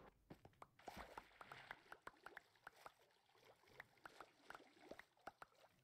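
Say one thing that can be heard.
Oars splash through water in quick strokes.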